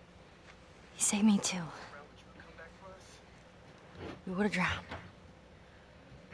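A bearded man speaks in a low, tense voice.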